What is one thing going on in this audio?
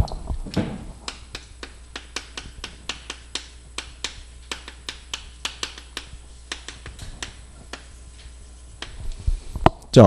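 Chalk taps and scrapes quickly on a board.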